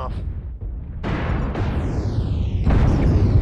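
An explosion rumbles and roars.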